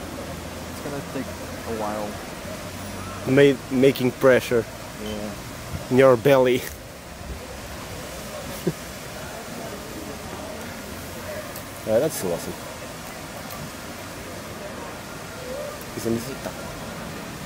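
A young man talks casually close by, outdoors.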